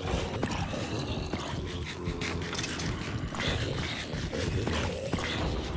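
Blows thud against a zombie in a game.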